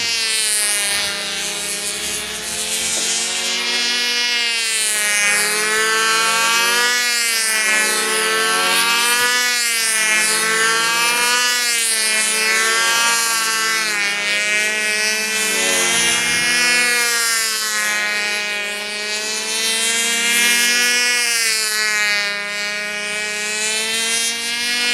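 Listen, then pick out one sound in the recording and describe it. A model airplane engine whines overhead, its pitch rising and falling as it passes back and forth.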